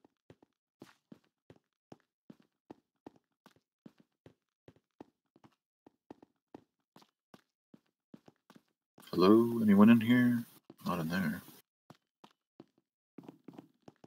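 Footsteps tap steadily on a hard stone floor.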